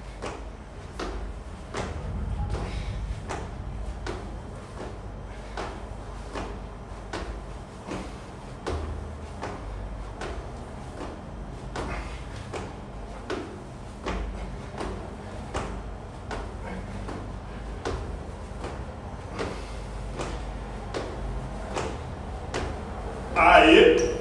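Sneakers tap and shuffle on a hard floor in a quick, steady rhythm.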